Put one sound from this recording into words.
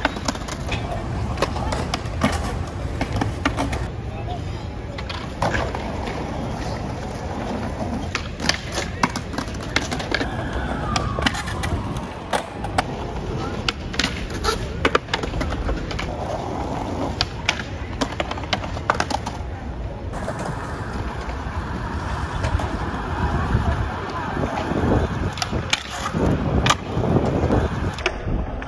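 A skateboard claps and clatters as it snaps and lands on stone ledges.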